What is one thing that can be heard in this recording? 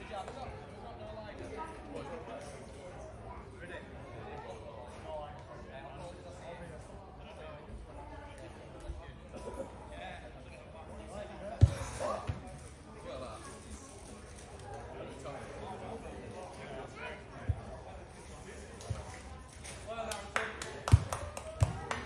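Men talk quietly at a distance outdoors.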